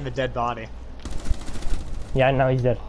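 Rapid gunshots ring out sharply.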